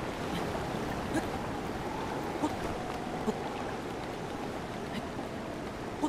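Rain falls steadily, with a low rushing hiss.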